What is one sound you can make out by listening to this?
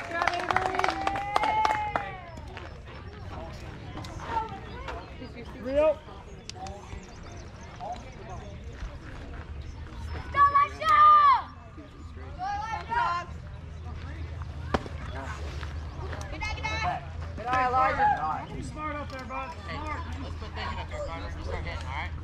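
Young players shout and cheer from a distance outdoors.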